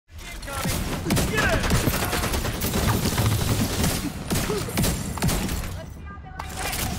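Automatic guns fire in rapid bursts.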